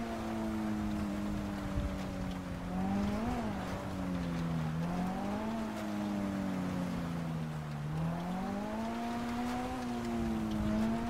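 A car engine hums steadily, rising and falling in pitch as it speeds up and slows down.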